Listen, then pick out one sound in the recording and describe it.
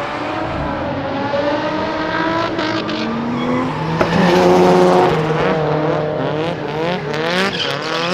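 Car tyres screech as they slide.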